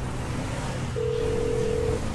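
A phone rings with a steady tone.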